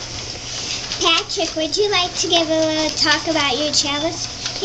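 A young boy sings loudly nearby.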